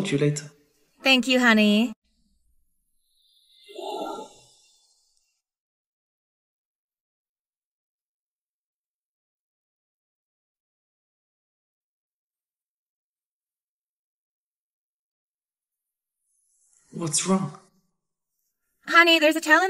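A young woman speaks with animation up close.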